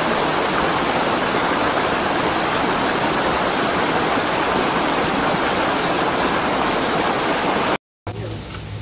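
A torrent of mud and water rushes and roars loudly.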